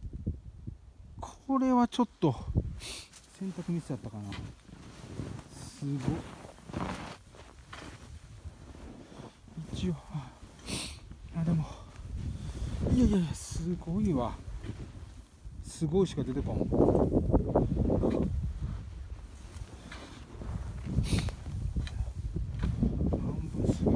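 Footsteps crunch and squeak through deep snow.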